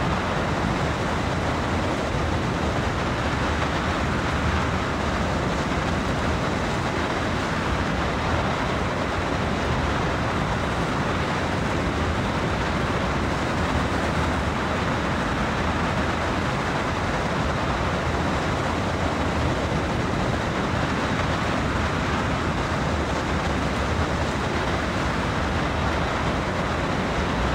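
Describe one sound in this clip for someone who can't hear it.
A locomotive engine rumbles steadily as the train rolls along the tracks.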